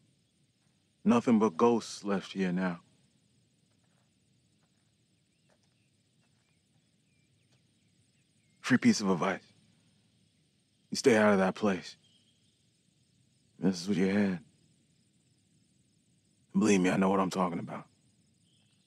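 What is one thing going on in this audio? A man speaks in a low, calm voice, with long pauses.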